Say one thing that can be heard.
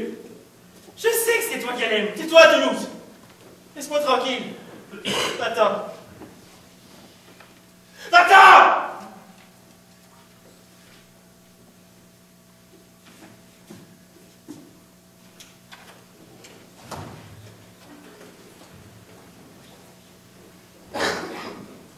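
A young man speaks loudly and with feeling in an echoing hall.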